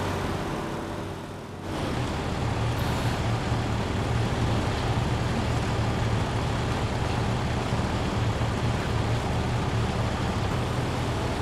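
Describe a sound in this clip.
A vehicle engine rumbles steadily as it drives over rough ground.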